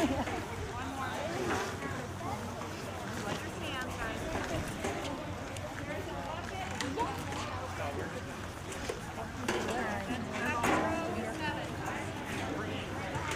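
A group of young people chatter and talk casually outdoors nearby.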